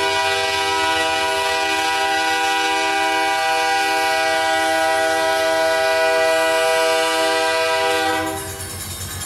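A locomotive horn blares loudly and steadily, then cuts off.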